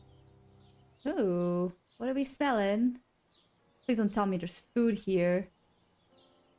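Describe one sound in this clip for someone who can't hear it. A young woman speaks with animation through a close microphone.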